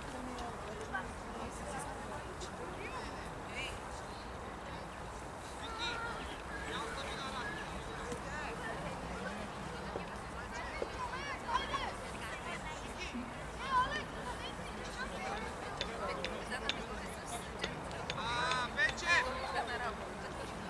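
Players shout to one another across an open field.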